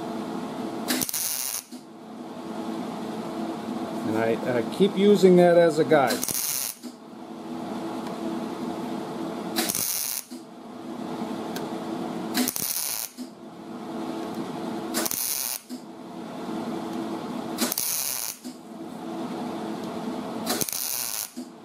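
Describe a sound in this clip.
An electric welding arc crackles and hisses in short, repeated bursts.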